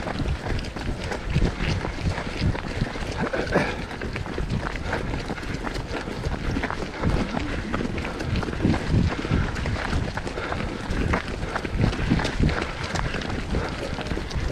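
Several runners' footsteps thud and scuff on a dirt path.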